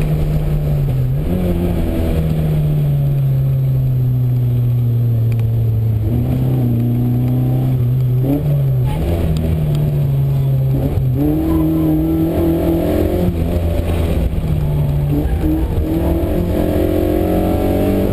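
A car engine hums and revs, rising and dropping in pitch as it changes gear.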